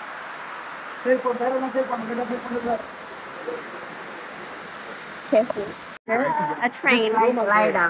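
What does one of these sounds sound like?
A young woman talks cheerfully close to the microphone.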